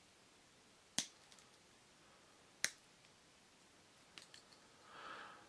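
A pocket knife's blades snap into place with sharp metallic clicks.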